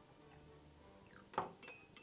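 Milk trickles into a mug.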